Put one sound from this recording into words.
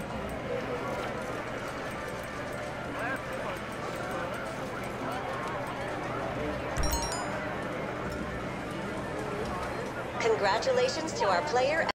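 Slot machines jingle and chime.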